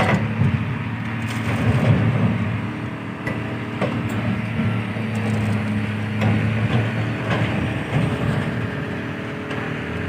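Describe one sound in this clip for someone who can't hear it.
Metal knocks and bangs sharply now and then.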